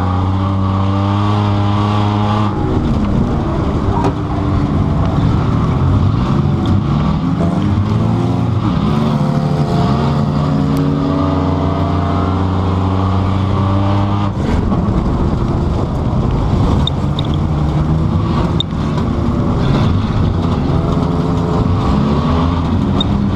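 A car engine hums steadily and rises and falls in pitch as the car drives.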